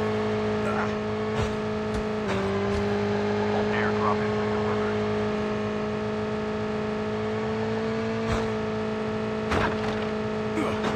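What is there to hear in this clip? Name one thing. A motorbike engine hums steadily as it rides along.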